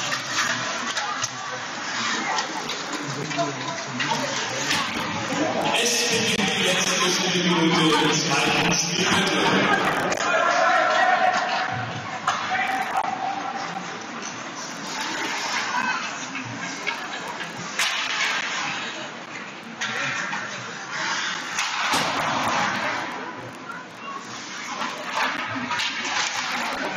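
Skates scrape and glide across ice.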